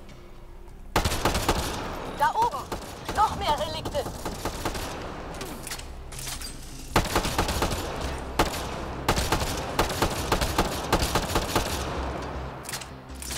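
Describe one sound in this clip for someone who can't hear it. Rifle shots crack and ring out in quick bursts.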